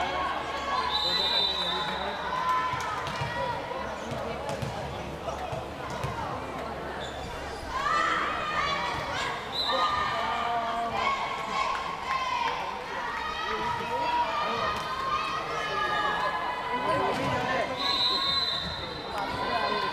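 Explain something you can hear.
Sneakers squeak on the wooden floor.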